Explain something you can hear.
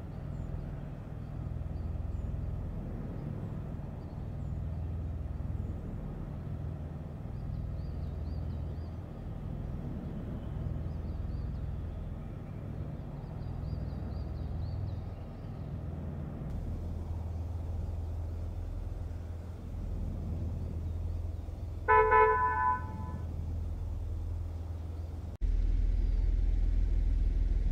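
A car engine rumbles low and steady.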